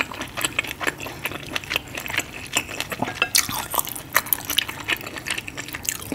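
Fingers squish and squelch through soft, saucy food close to a microphone.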